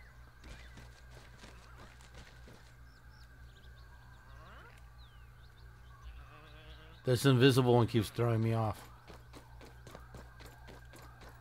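Footsteps crunch softly on dry dirt.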